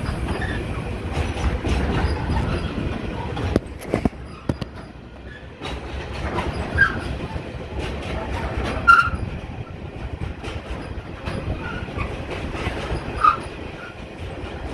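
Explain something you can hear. Wagon wheels clatter and squeal on the rails.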